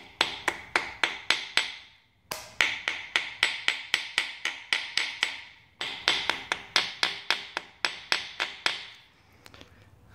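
A small hammer taps rapidly on metal.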